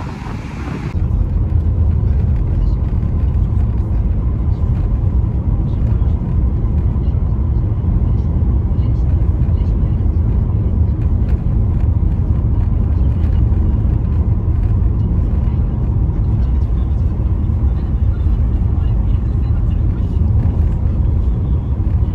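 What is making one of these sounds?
A car drives along a road with a steady low rumble from inside.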